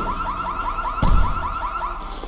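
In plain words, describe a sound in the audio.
A van door slams shut.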